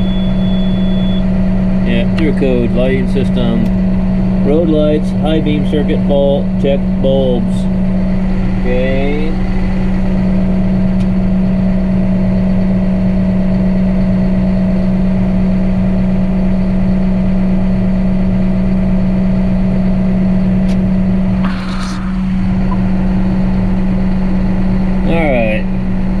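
A tractor engine hums steadily throughout.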